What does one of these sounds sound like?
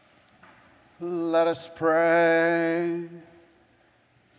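An elderly man sings a short chant, echoing in a large hall.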